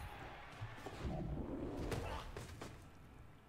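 A heavy body thuds onto grass.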